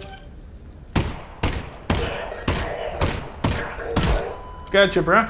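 A gun fires several sharp shots in quick succession.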